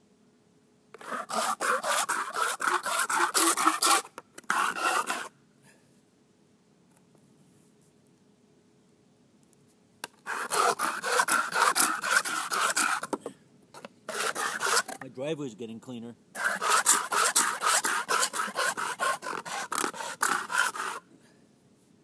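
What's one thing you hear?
A metal can scrapes rapidly back and forth on rough concrete.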